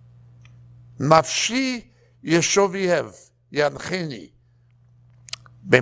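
A middle-aged man reads aloud calmly through a lapel microphone.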